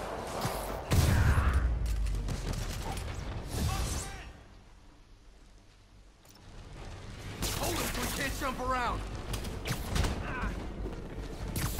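Punches and kicks thud in a brawl.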